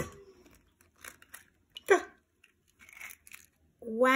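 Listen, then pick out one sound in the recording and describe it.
An eggshell cracks sharply.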